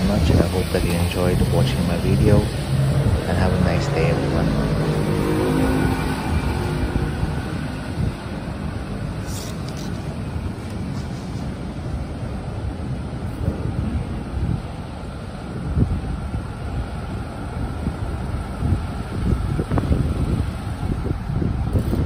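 Traffic hums steadily along a wet city street outdoors.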